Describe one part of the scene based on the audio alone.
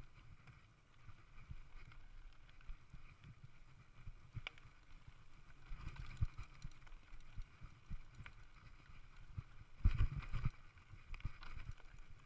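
A mountain bike's tyres crunch over a rocky dirt trail.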